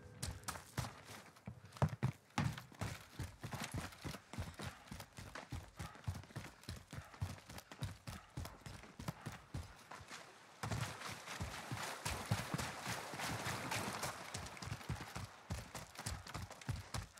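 Footsteps thud quickly and steadily on hard ground.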